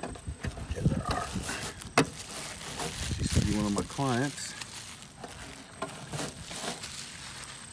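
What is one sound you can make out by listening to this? A plastic bag rustles as it is pulled from a dispenser.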